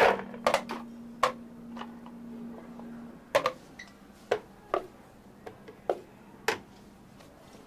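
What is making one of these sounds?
Small pieces drop onto ice in a plastic jar with sharp clinks and knocks.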